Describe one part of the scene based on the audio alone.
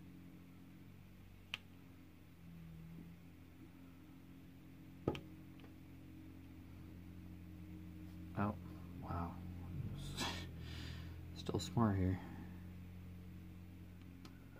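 A plastic pen taps and clicks lightly on a board.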